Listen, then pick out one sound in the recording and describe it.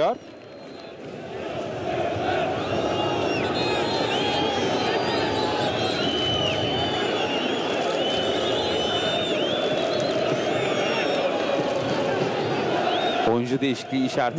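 A large crowd chants and cheers loudly in a stadium.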